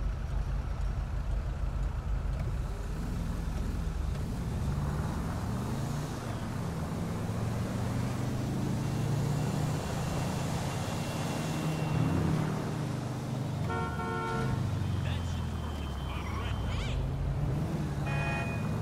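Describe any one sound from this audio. A car engine hums low and rises and falls as the car speeds up.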